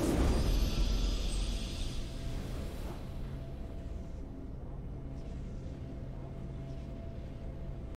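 A triumphant fanfare swells and then settles into a soft, steady hum.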